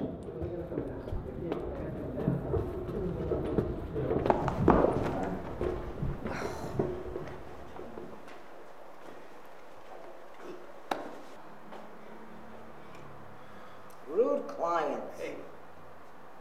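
An elderly woman speaks quietly nearby.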